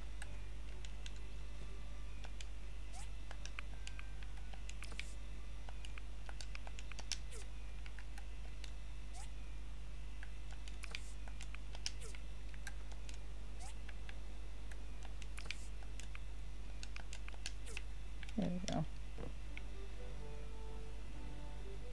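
Soft game menu clicks and chimes tick now and then.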